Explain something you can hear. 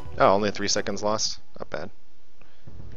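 A man speaks with animation, close to a headset microphone.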